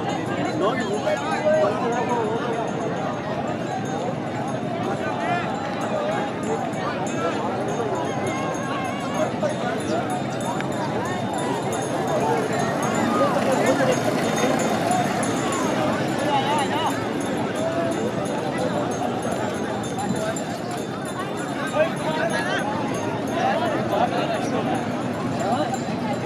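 A large outdoor crowd of men chatters and calls out.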